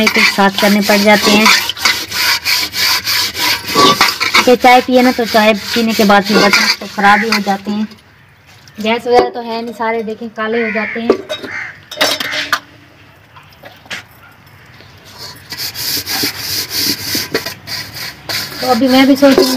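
Metal dishes clatter and scrape as they are washed.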